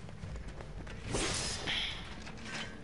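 A blade swishes and strikes with a crackling burst.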